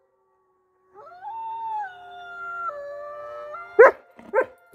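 A dog whines in long, high tones.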